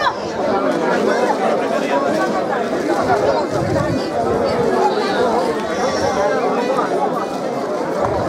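An accordion plays along.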